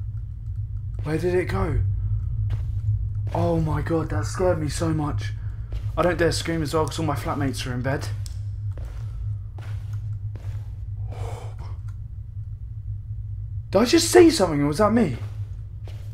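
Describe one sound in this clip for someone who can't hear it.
A young man talks into a close microphone, quietly and tensely.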